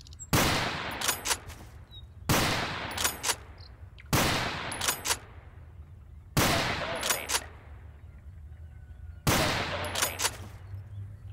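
A shotgun's pump action racks with sharp metallic clacks after each shot.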